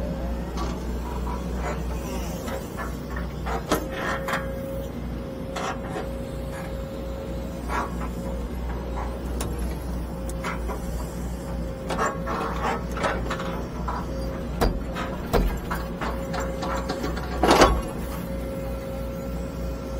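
A hydraulic pump whines steadily.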